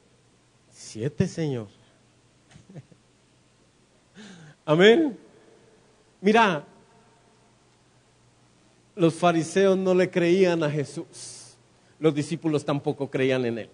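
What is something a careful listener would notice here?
A man preaches with animation through a microphone and loudspeakers, in bursts with pauses.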